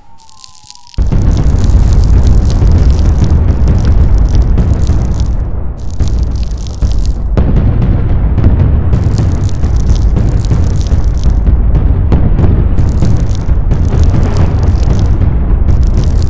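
Huge explosions rumble and roar loudly without pause.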